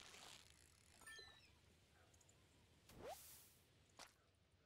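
A cheerful game jingle chimes as a fish is caught.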